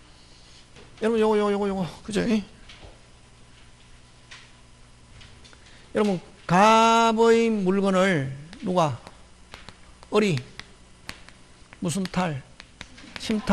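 A man lectures through a microphone in bursts, with animation.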